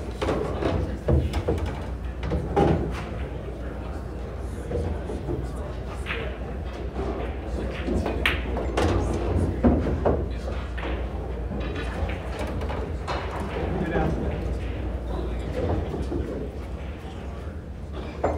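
Men murmur and talk quietly in the background of a large room.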